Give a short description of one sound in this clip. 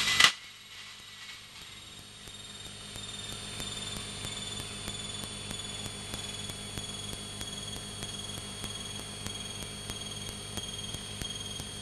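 A propeller engine drones steadily, rising slightly in pitch as it speeds up.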